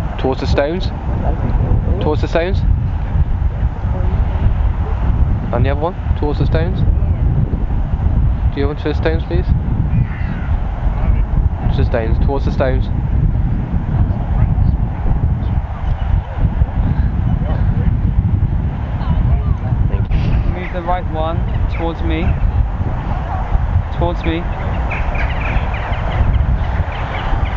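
Wind blows and rumbles steadily outdoors.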